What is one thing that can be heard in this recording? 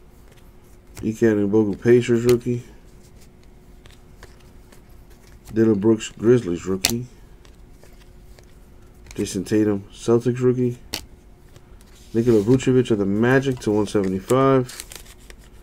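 Cards rustle and slide as hands flip through them.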